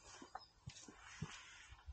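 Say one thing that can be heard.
A man's hands knock and rub against a motorcycle.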